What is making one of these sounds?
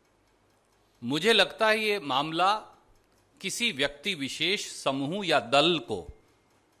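A man speaks forcefully through a loudspeaker.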